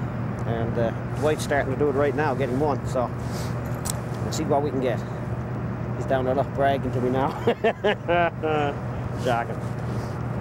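A man speaks calmly outdoors, close by.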